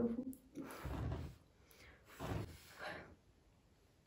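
A person blows out candles with a short puff of breath.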